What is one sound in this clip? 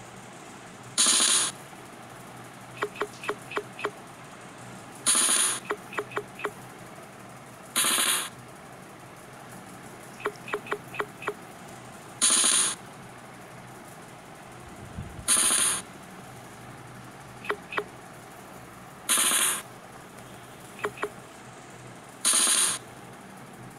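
Game dice rattle in short bursts.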